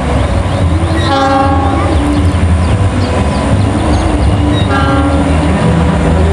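A train horn sounds twice in short blasts.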